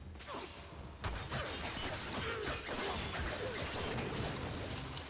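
Heavy gunfire and impacts clatter in a rapid fight.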